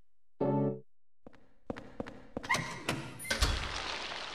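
Footsteps scrape on a rough stone floor.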